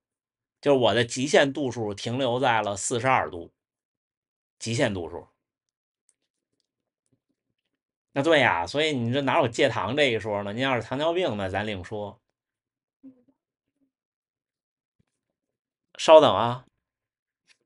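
A young man speaks calmly and close to the microphone, in short bursts with pauses.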